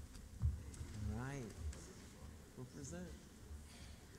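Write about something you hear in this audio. A man speaks quietly nearby in a large room.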